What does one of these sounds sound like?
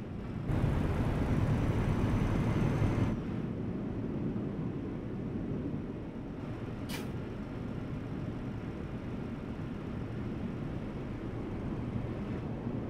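Tyres roll on the road with a steady low rumble.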